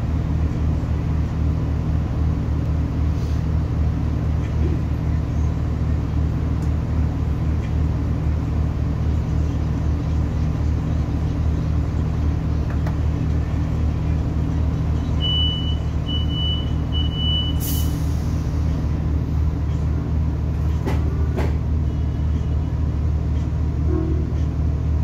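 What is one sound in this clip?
A train engine hums and rumbles steadily inside a carriage.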